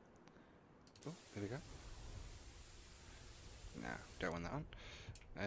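A television switches on with a burst of static hiss.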